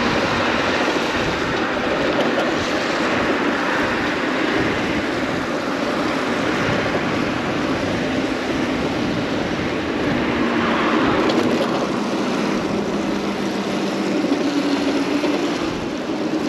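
Tyres hiss steadily on a wet road.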